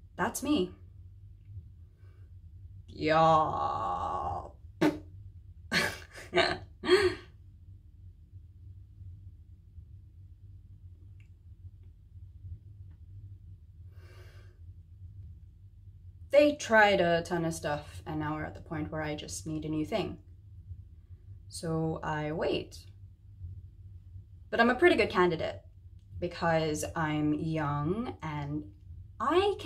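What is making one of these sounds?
A young woman speaks close to the microphone, sounding troubled, with pauses between phrases.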